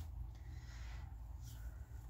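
Paper rustles and slides under a hand.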